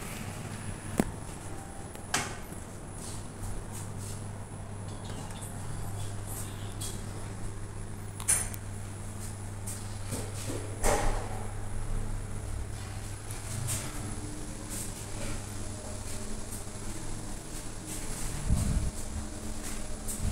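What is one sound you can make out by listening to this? A lift motor hums steadily while the car moves.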